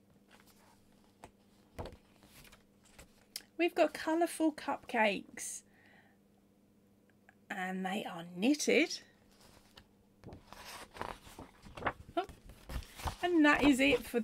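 Paper pages rustle as a book's page is turned.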